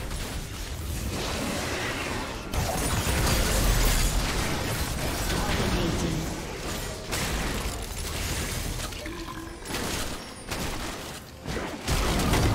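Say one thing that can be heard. Spell effects blast and crackle in a fast game battle.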